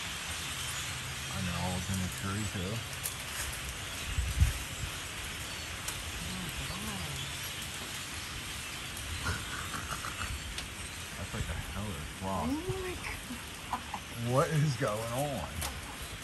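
A large flock of birds chatters and calls noisily overhead, outdoors.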